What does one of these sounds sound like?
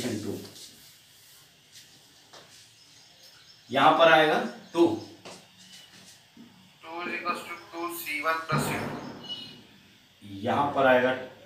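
A man explains calmly, close to a microphone, with pauses.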